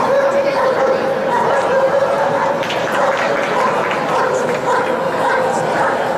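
A dog barks excitedly.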